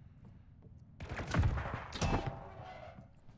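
A metal pick swings and strikes with a loud clang.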